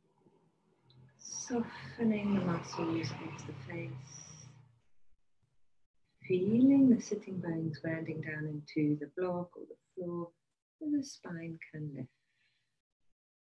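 A middle-aged woman speaks calmly and softly, close to a microphone.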